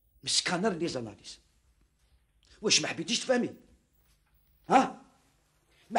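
A middle-aged man speaks forcefully, close by, in short bursts.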